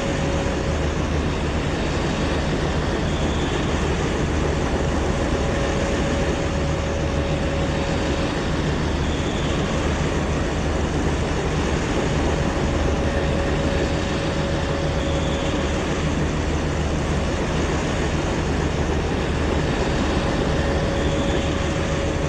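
Train wheels rumble along the rails.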